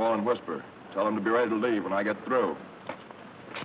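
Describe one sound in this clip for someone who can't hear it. An older man speaks close by.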